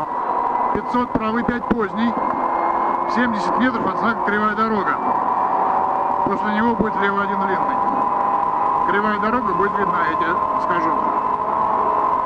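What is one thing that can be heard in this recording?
A man calls out pace notes rapidly over an intercom.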